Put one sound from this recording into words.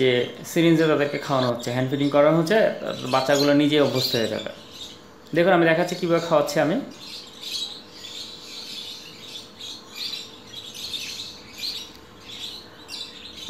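Baby birds chirp and squeak softly close by.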